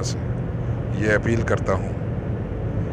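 A middle-aged man speaks briefly and calmly, close to a phone microphone.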